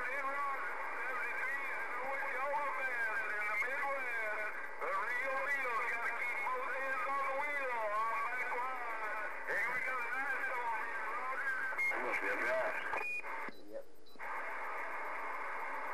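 A radio hisses with static.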